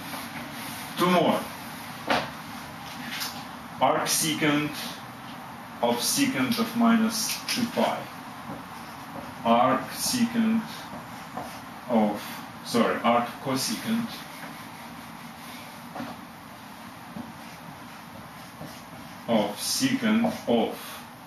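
A middle-aged man speaks calmly and explains, close by.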